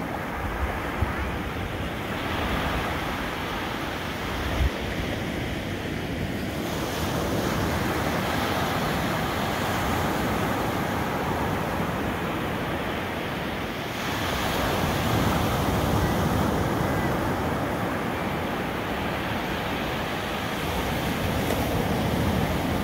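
Ocean waves break and wash up onto the shore.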